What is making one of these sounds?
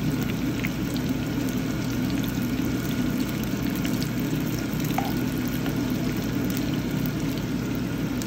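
A metal spoon scrapes against a pan.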